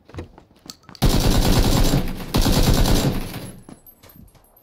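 A rifle fires a rapid burst of loud shots in an echoing room.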